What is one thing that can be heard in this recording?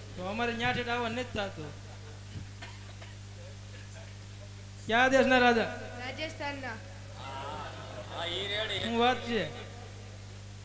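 A woman sings loudly through a microphone and loudspeakers, in short phrases.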